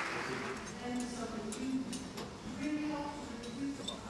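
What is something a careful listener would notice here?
Footsteps clang on a metal ladder.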